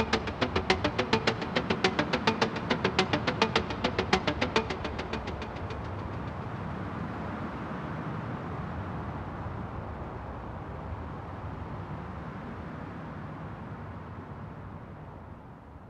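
Rain patters steadily on a window pane.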